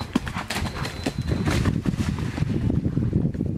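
A horse splashes through water.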